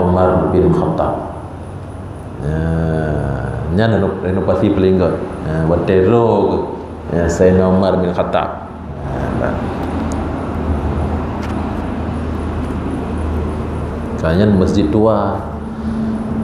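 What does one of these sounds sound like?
A man chants in a melodic voice through a microphone, echoing in a large hall.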